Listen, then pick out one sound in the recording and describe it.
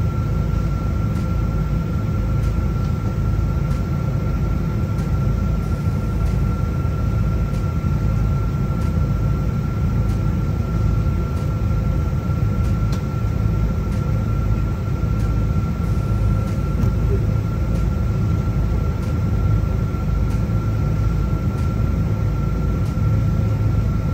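Jet engines roar steadily with a high whine.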